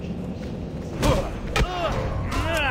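A fiery spell bursts with a loud whoosh.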